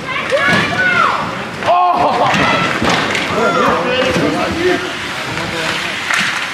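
Children shout excitedly from across an open rink.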